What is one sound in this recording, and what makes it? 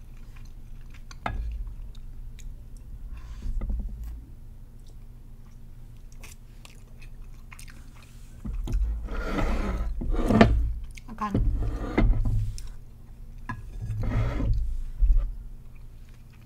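A young woman chews and slurps food close to a microphone.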